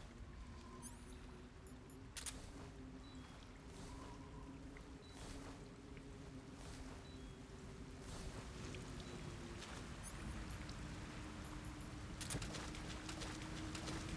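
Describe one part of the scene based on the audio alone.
Short electronic menu beeps sound.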